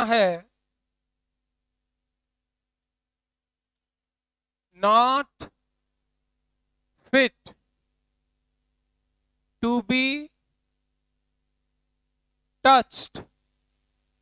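A man speaks in short, calm phrases with long pauses between them.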